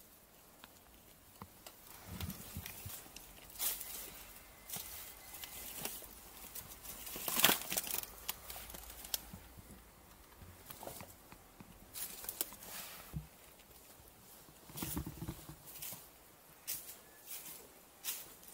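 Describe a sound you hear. Footsteps crunch on debris and dry leaves.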